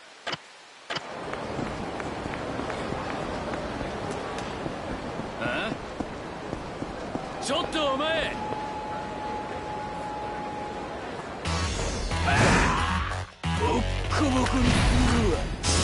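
A steady hum of city street noise plays.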